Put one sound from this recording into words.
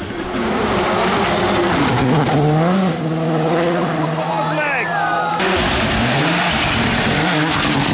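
A rally car engine roars and revs hard as it races past.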